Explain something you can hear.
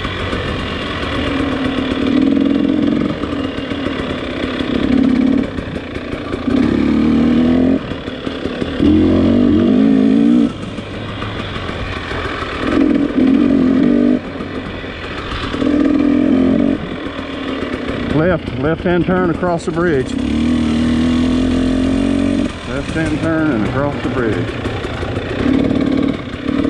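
Tyres crunch over a rough dirt trail.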